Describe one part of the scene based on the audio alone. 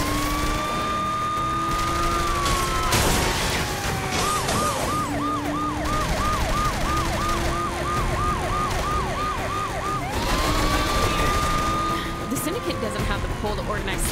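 A car engine roars at speed.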